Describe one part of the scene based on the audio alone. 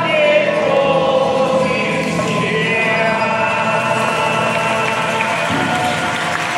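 A man sings loudly in a large echoing hall.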